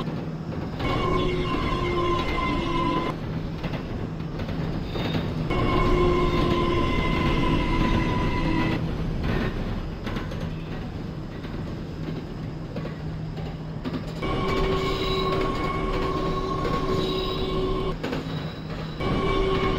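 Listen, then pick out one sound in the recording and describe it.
An electric train motor whines, coming and going.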